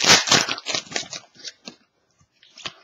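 A plastic card wrapper crinkles as hands tear it open.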